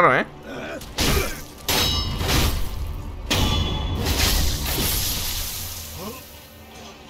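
Swords clash and slash with sharp metallic strikes.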